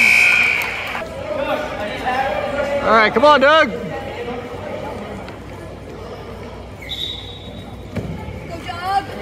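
Men and women shout encouragement loudly in an echoing gym.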